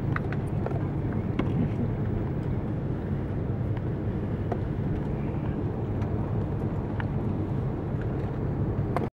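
A jet airliner's engines rumble low and steady, heard from inside the cabin.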